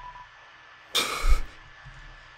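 A short electronic blip sounds as a text box pops up.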